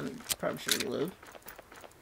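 A rifle's metal parts click as it is reloaded.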